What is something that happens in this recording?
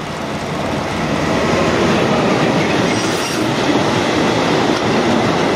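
A freight train's wagons rumble and clatter loudly past close by.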